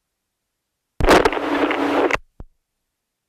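A paraglider canopy rustles and flaps in the wind.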